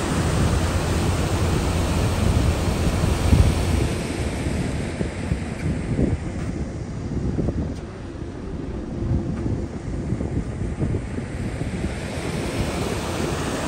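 A flag flaps in the wind.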